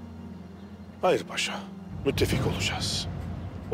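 A man speaks forcefully and close by.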